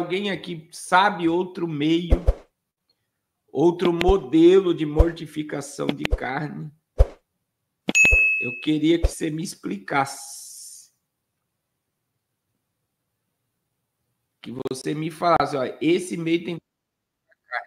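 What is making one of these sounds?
A man speaks with animation into a close microphone, with pauses.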